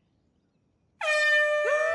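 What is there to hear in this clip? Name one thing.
An air horn blares loudly right up close.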